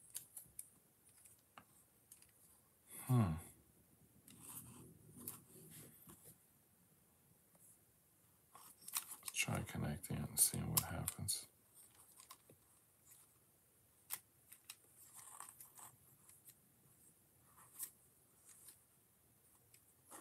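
Small plastic bricks click and snap together.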